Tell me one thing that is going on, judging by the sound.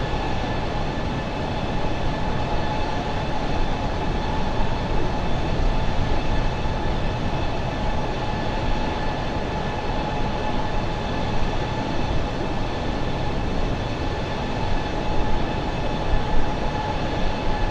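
Jet engines roar steadily with a high whine.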